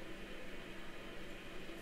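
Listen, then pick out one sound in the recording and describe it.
A man sips a drink with a soft slurp.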